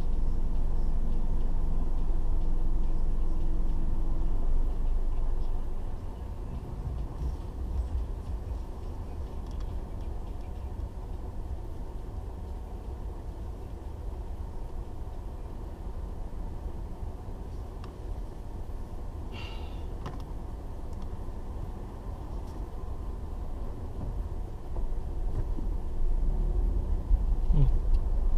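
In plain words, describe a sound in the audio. An engine hums low and steady from inside a car.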